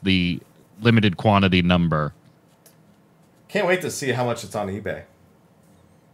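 A man talks animatedly over a microphone in an online call.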